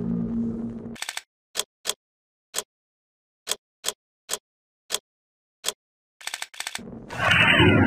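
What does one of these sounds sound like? Short clicks tick one after another as a menu turns.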